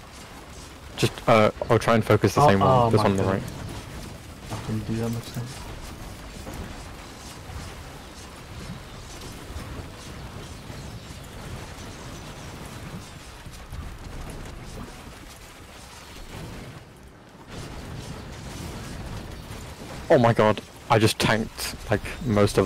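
Explosions boom during a game battle.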